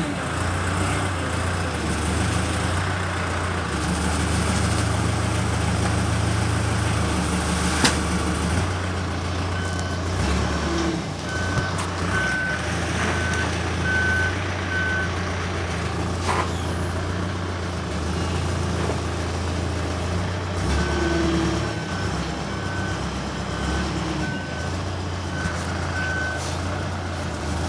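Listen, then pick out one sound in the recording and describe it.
A hydraulic loader whines as it lifts a hay bale.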